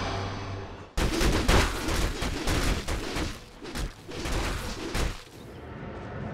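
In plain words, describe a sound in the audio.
Magic blasts and sharp hits crackle in a fast, noisy fight.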